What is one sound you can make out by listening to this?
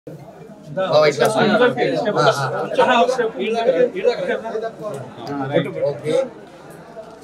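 Several men and women talk over one another nearby.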